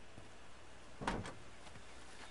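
A car door latch clicks.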